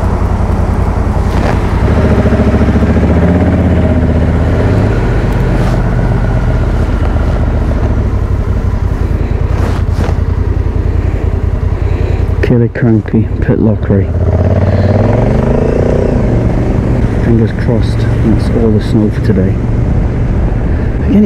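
Wind buffets a microphone with a low rumble.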